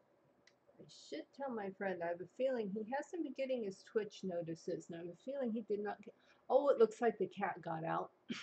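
An elderly woman talks with animation through a microphone.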